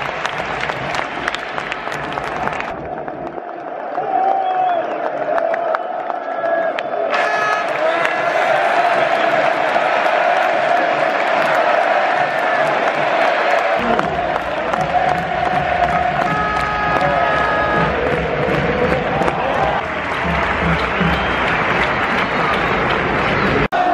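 A huge stadium crowd cheers and roars loudly.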